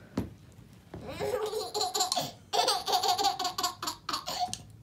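A baby giggles and squeals with laughter.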